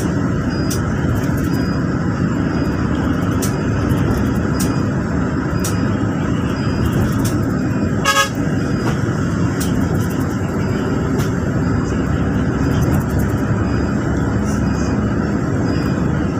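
A vehicle's engine hums steadily from inside.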